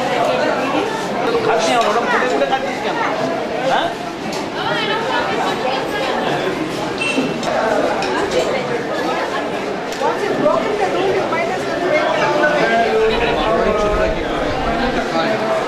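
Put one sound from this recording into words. Forks and spoons clink against plates.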